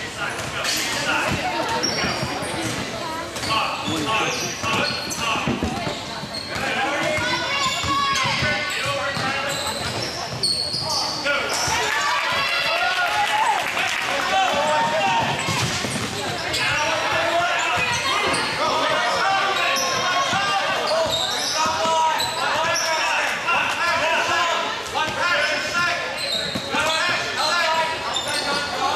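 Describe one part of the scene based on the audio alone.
Spectators shout and cheer in an echoing gym.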